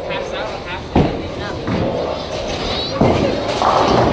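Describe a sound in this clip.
Pins crash and clatter.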